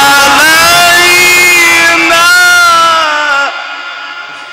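A man chants in a long, held melody through a loudspeaker, then stops, leaving a long echo that slowly fades.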